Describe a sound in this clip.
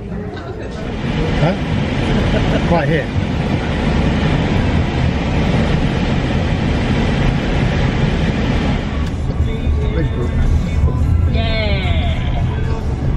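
A car engine hums and tyres roll on the road.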